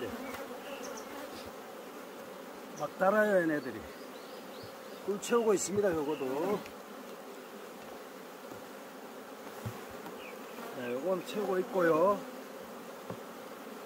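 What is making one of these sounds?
Wooden frames knock and scrape as they are lifted out of a hive.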